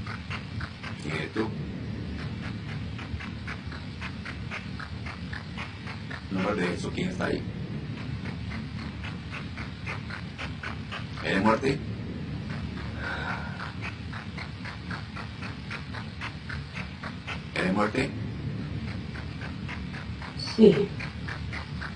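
A middle-aged woman speaks softly over an online call.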